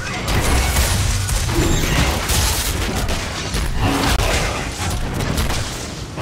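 Spells and weapon hits crash and burst rapidly.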